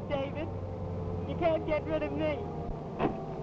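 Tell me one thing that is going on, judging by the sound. A young woman speaks brightly and cheerfully.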